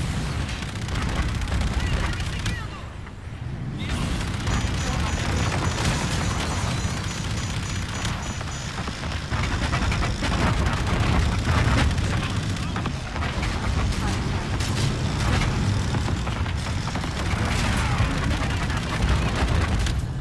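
A spaceship engine rumbles deeply.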